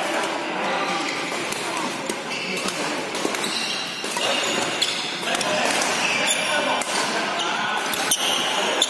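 Shuttlecocks are struck with sharp pops of badminton rackets in a large echoing hall.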